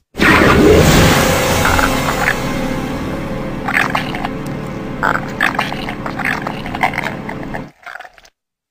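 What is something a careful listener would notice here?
A monster growls and snarls loudly.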